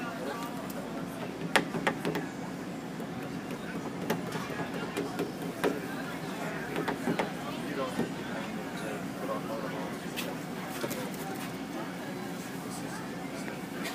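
Plastic film crinkles and rustles as it is smoothed by hand.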